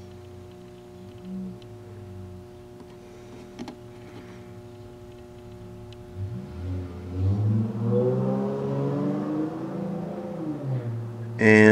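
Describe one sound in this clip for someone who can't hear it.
A button clicks under a finger.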